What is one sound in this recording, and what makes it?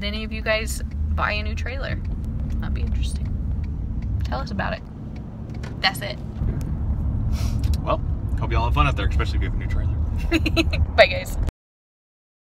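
A car engine rumbles steadily from inside the vehicle.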